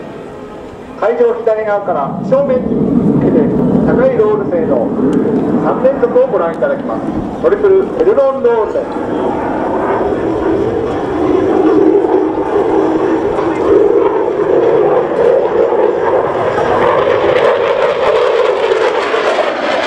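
A jet roars loudly overhead outdoors.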